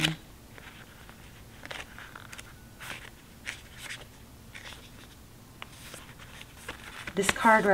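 Paper pages flutter and rustle as a booklet is leafed through.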